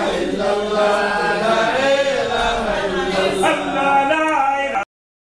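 A man chants in a long, wavering, drawn-out voice close by.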